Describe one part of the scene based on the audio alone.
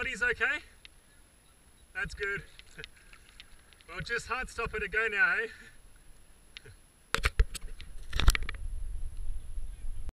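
Water rushes and gurgles around a kayak on a fast river.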